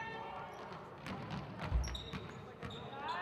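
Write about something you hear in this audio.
A basketball thuds as it bounces on a hard floor in an echoing gym.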